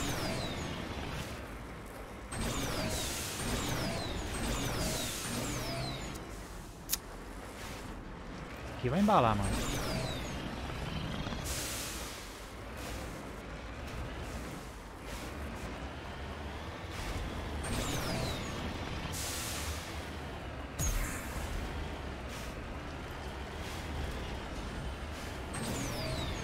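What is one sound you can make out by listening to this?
A vehicle's engine hums as it climbs over rocky ground.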